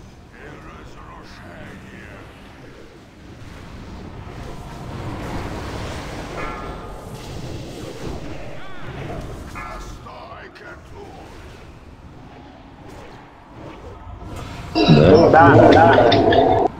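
Magic spells crackle and whoosh during a fierce battle.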